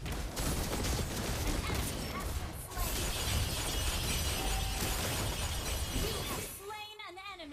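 Magic spells crash and whoosh in a busy fantasy battle.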